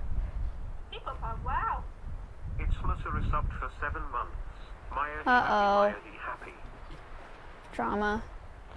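A fox gives high, wavering yelps and screams.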